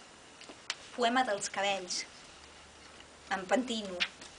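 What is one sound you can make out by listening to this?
A middle-aged woman reads aloud expressively, close by in a room.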